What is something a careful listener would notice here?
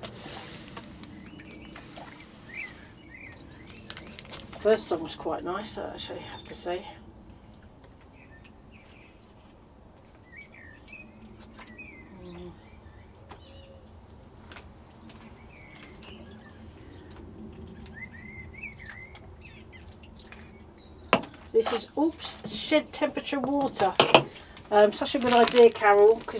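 Water trickles from a bottle into soil.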